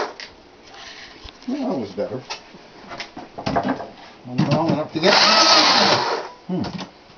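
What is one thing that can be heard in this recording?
A chainsaw engine idles and revs in short bursts.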